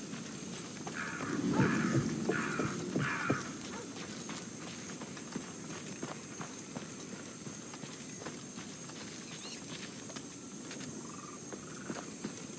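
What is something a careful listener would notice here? Soft footsteps creep over wooden boards and gravel.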